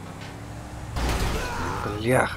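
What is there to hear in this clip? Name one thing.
A car crashes into another car with a heavy thud.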